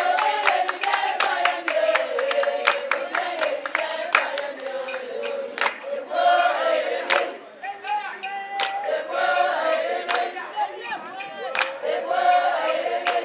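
A group of women sing together loudly.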